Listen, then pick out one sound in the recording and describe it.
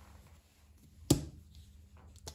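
A small bottle is set down on a metal counter with a knock.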